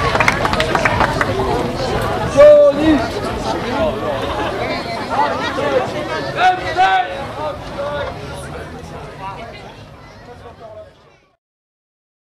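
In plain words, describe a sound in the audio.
A woman sings into a microphone with the band.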